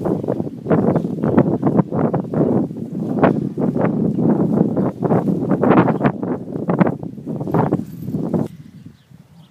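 A cow tears and munches grass close by.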